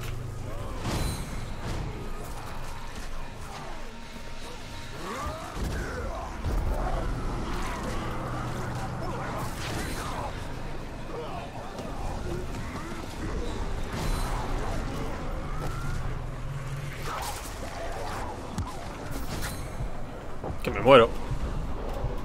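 Light bursts explode with sharp blasts.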